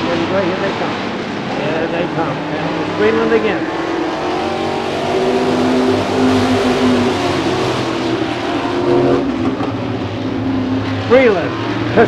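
Several race car engines roar loudly as the cars speed around a track.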